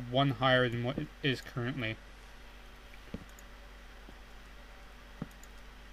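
Wooden blocks are set down with soft, dull knocks.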